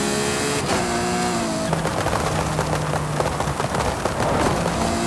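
A sports car engine roars at high speed and its pitch drops as it slows.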